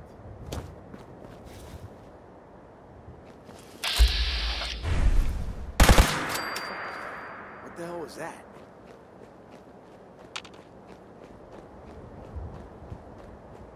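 Footsteps tread softly on rough ground.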